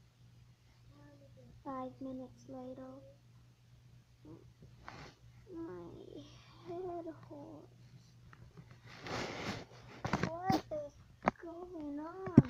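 A young girl talks playfully, close by.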